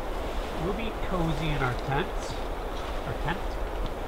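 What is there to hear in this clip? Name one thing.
Tent fabric rustles as it is handled.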